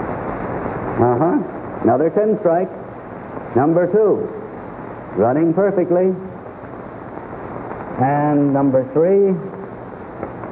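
A man speaks clearly and cheerfully, as if presenting, through an old, hissy recording.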